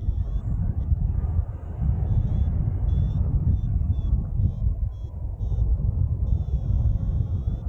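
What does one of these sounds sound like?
Wind rushes steadily past in flight outdoors.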